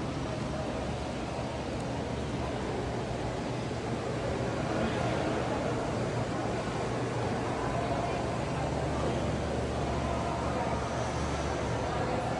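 A crowd murmurs and chatters throughout a large echoing indoor hall.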